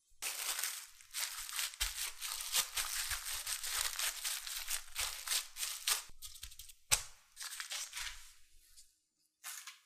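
Plastic wrap crinkles and rustles under hands.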